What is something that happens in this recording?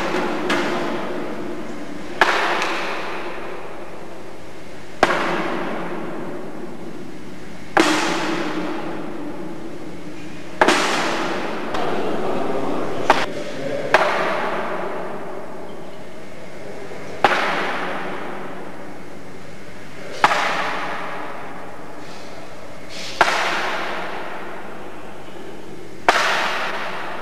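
Bean bags thud one after another onto a wooden board, echoing through a large hall.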